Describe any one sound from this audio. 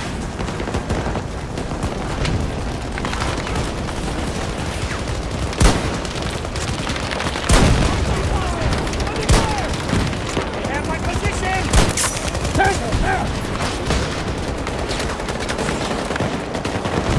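Gunfire and explosions rumble in the distance throughout.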